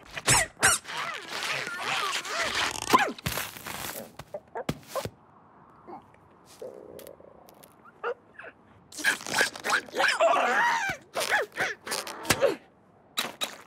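A small cartoon bird squawks and chatters frantically.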